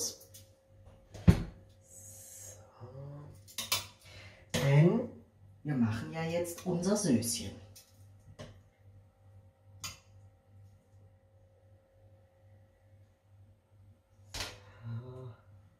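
Tongs clink against a metal pot.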